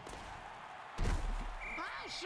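Players collide with a heavy thud.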